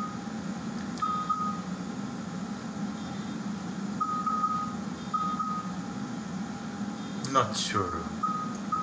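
Short electronic blips sound as a menu cursor moves.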